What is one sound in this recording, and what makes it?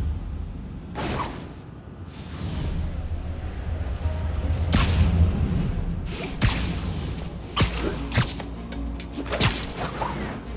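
Web lines thwip and snap with sharp whooshes.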